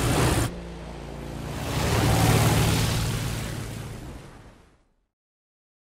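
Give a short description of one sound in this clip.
Water sprays and splashes beneath a fast boat.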